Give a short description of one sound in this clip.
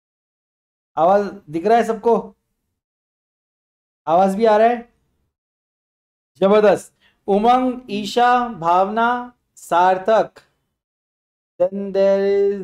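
A young man speaks with animation close to a microphone, in bursts with pauses.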